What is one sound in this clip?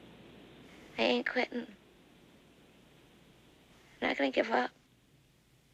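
A young woman speaks softly and wearily nearby.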